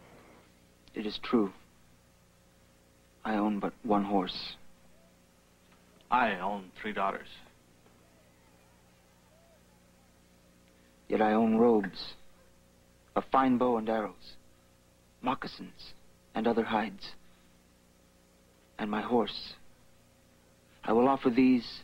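A young man speaks calmly in short phrases with pauses between them.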